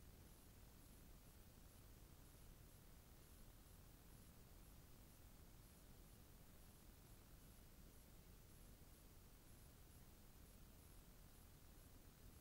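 Hot oil sizzles and bubbles softly in a pot.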